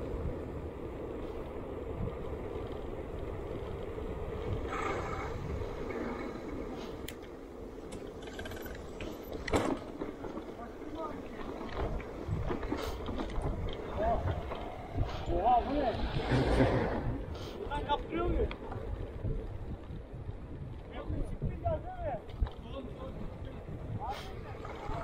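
Wind rumbles over a microphone on a moving bicycle.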